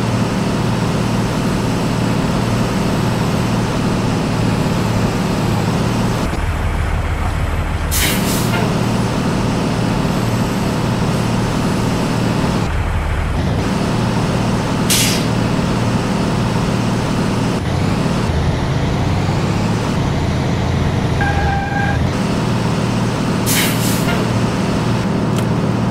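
A truck's diesel engine rumbles steadily and revs as it manoeuvres.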